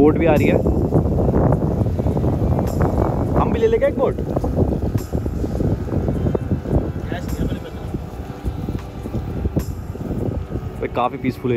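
A small motorboat engine hums across the water.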